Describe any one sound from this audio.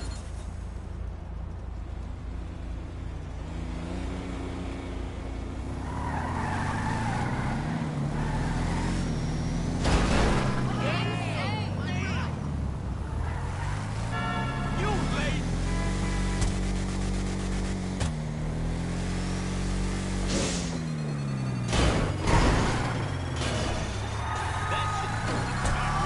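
A heavy truck engine roars and revs up and down as it drives.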